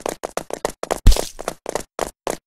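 A wet splat bursts loudly.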